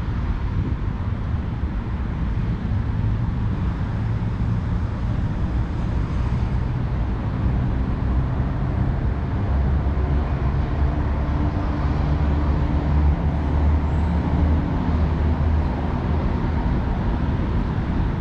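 Tyres roll steadily over smooth asphalt.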